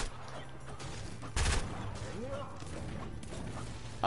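A pickaxe chops against wood in a game.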